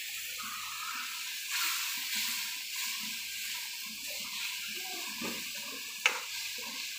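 Sauce sizzles and bubbles in a hot pan.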